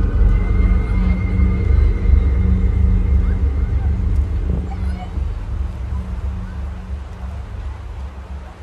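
A river rushes over rocks in the distance.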